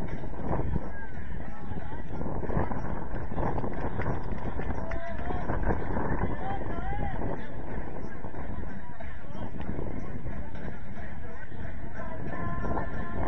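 Young men shout to each other at a distance across an open field.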